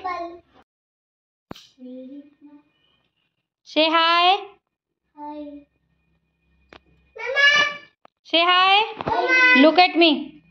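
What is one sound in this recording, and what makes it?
A young girl speaks in a high, sing-song voice, close by.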